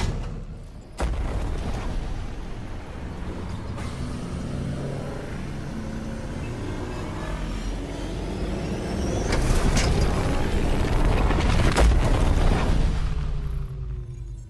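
A spaceship engine roars and whooshes through a warp.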